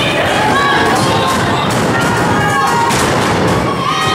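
A wrestler thuds heavily onto a ring mat.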